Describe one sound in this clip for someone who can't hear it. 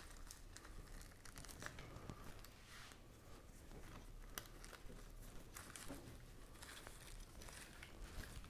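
Leaves and moss rustle close by.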